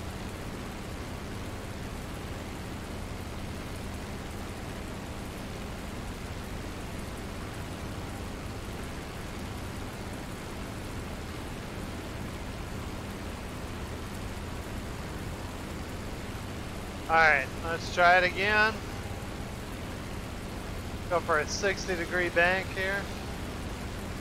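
A propeller engine drones steadily.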